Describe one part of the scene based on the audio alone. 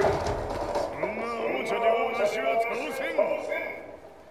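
An elderly man speaks gruffly and defiantly.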